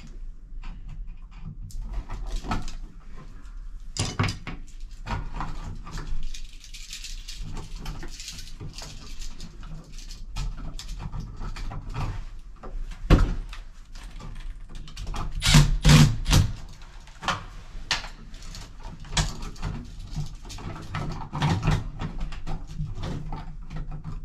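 Small tools click and scrape against a metal wall box.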